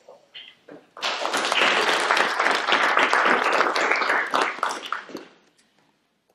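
A group of people applauds.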